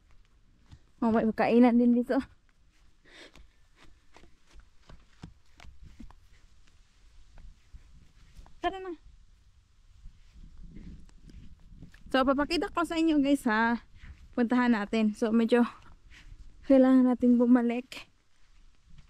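A young child talks nearby in short bursts.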